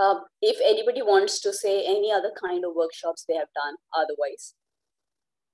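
A woman speaks steadily over an online call.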